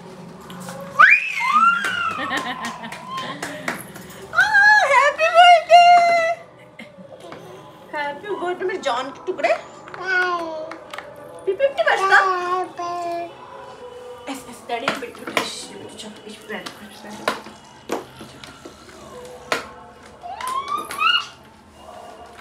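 A toddler babbles and squeals with high-pitched excitement close by.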